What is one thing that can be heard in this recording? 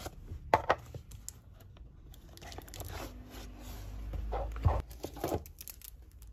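A cardboard box slides and bumps against a table.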